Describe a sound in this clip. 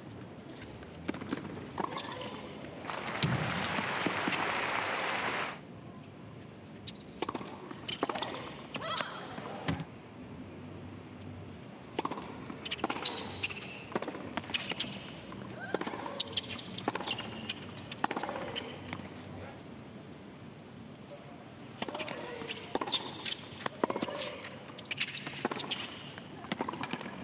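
A tennis ball is struck hard with a racket again and again.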